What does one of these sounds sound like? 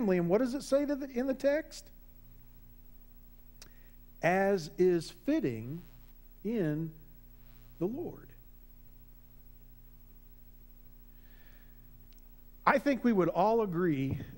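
A man speaks with animation through a microphone, pausing between phrases.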